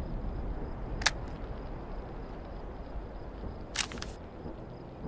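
A metal gun part clicks sharply into place, twice.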